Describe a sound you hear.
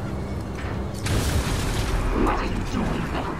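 An explosion bursts with a loud, rushing roar.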